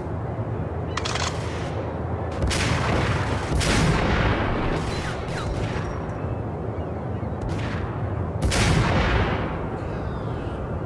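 Sniper rifle shots crack, each followed by a long echoing boom.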